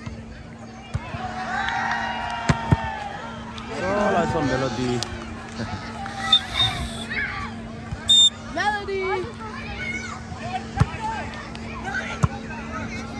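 Young people shout and chatter outdoors.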